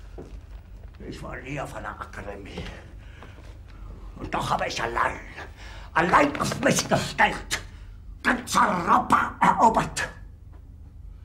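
A middle-aged man speaks quietly, then shouts angrily.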